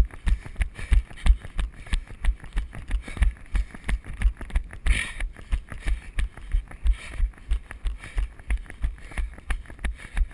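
A bicycle rattles and clanks over the bumps.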